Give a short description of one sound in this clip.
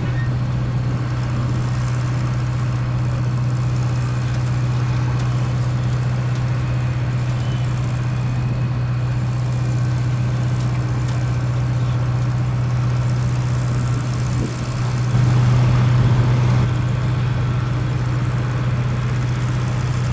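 A truck engine rumbles steadily as it slowly pulls forward.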